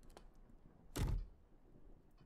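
A wooden box lid thumps open.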